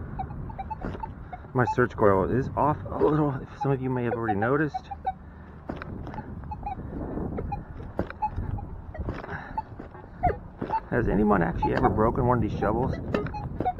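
A metal detector beeps in short bursts.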